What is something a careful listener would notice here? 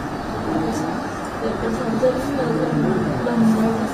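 A young girl speaks softly and tearfully close by.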